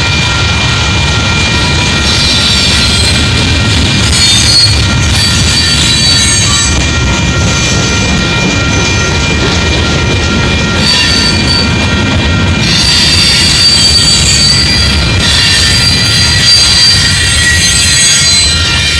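Wheels squeal and screech on the rails.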